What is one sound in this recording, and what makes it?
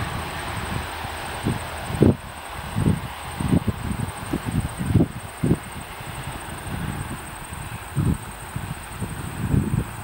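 A freight train rumbles steadily in the distance.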